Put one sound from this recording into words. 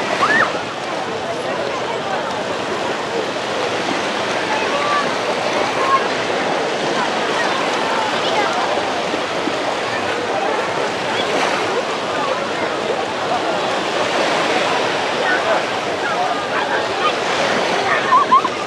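A crowd of people chatters and children shout.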